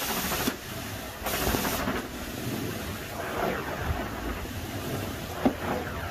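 A carpet cleaning wand roars steadily as it sucks water from a carpet.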